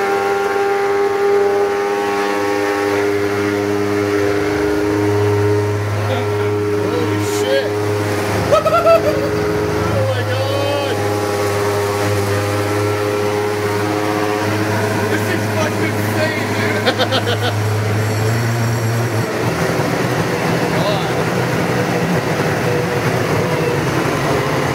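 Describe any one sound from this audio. A blender whirs loudly and steadily, its motor pitch shifting as it runs.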